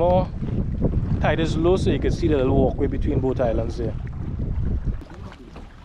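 Wind blows hard over open water.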